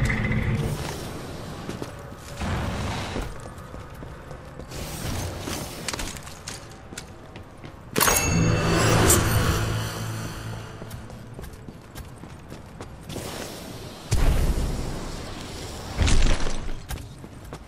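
Footsteps clank on metal floors.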